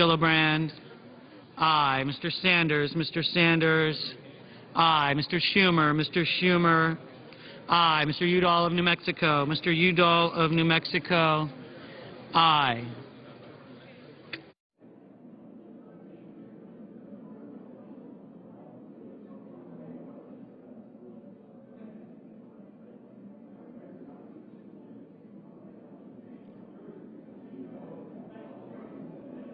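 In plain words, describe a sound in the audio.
A crowd of men and women murmurs and chats in a large echoing hall.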